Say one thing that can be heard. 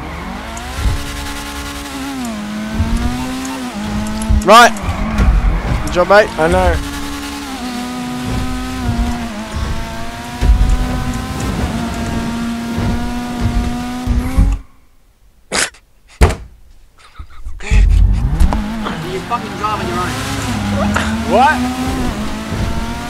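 A sports car engine roars at high revs, rising and falling as the gears shift.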